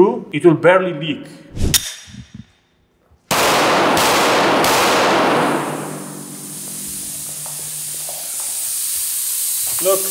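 A man speaks close up with animation.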